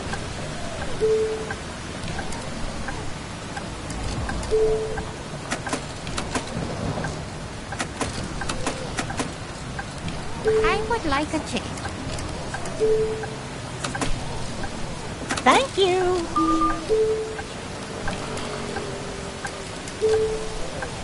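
A ticket machine gives short electronic beeps.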